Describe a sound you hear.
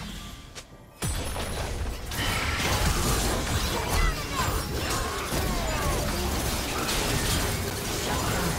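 Magical blasts whoosh and burst during a fast fantasy battle.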